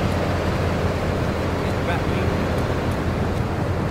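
Footsteps run on pavement.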